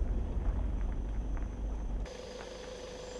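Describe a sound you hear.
A pickup's engine rumbles, heard from inside the cab.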